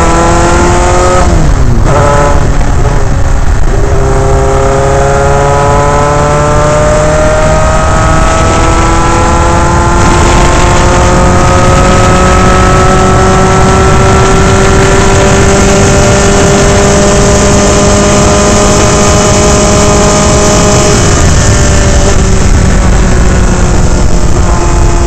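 Wind rushes loudly past the open cockpit.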